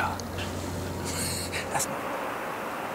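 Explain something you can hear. A man whispers close by.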